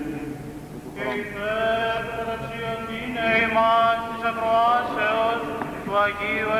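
An elderly man sings into a microphone.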